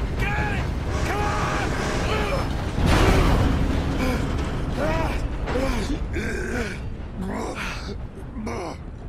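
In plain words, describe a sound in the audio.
A steam train rumbles and chugs past.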